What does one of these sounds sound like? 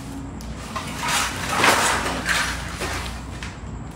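Loose items rattle and scrape across a hard floor.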